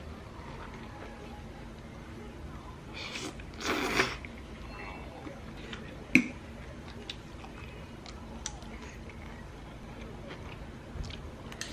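Metal cutlery clinks and scrapes against a ceramic plate.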